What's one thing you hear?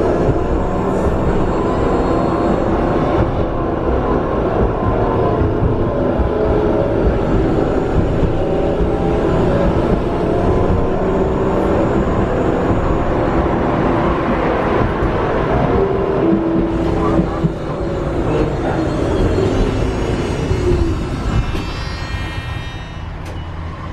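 A tram rumbles and hums loudly as it rolls along the tracks.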